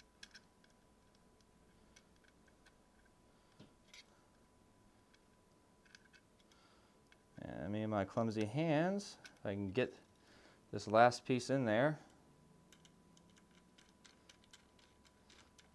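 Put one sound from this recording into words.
A small screwdriver turns tiny screws with faint clicks.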